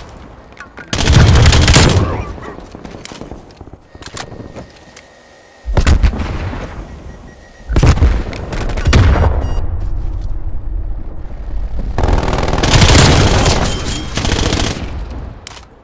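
Gunfire from a rifle rattles in bursts.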